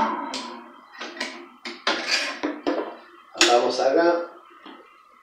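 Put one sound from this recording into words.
A metal jug clinks against a counter.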